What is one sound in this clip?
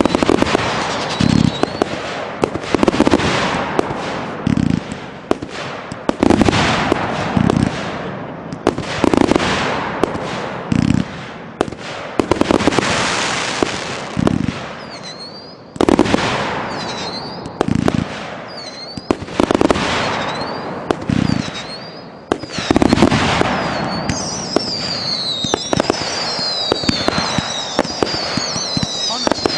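Fireworks crackle and fizz high overhead.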